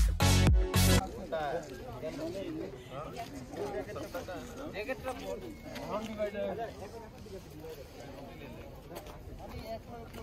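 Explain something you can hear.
A crowd of adults chats nearby with calm, overlapping voices.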